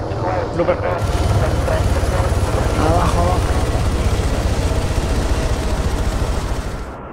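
Wind roars loudly and steadily through an open aircraft door.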